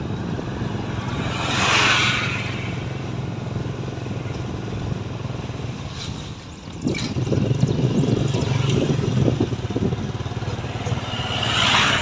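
A car passes close by with a brief whoosh.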